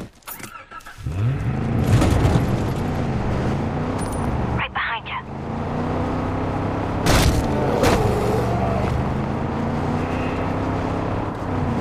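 A truck engine starts and roars steadily as the truck drives off.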